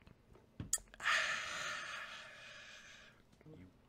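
A young man lets out a long, loud exclamation.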